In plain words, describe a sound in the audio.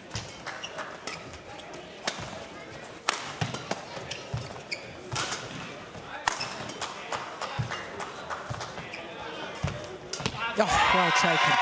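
Rackets strike a shuttlecock back and forth with sharp pops.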